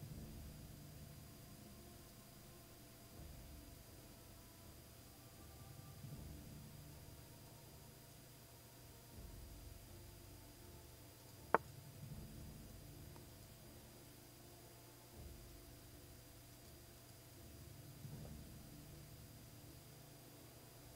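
A man murmurs quietly into a close microphone.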